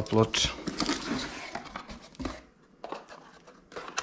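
A cardboard box lid slides open.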